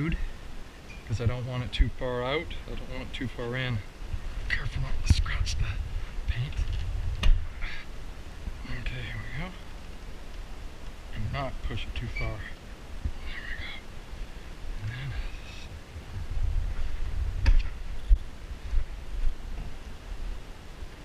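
Plastic trim clicks and rattles as it is pried loose.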